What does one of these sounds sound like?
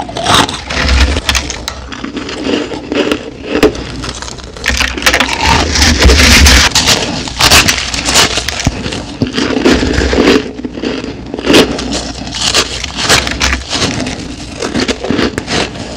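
A woman chews with wet mouth sounds close to a microphone.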